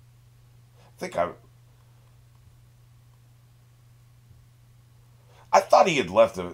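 A middle-aged man speaks briefly and casually, close to a microphone.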